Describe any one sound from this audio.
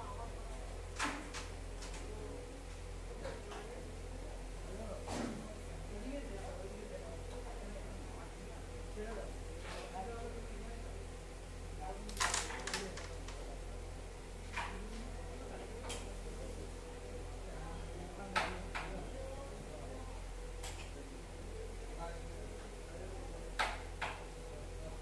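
Carrom pieces click sharply against each other on a wooden board.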